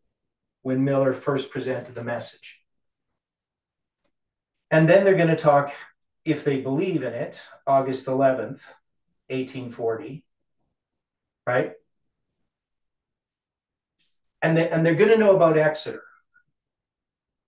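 An elderly man speaks calmly and explains, close by.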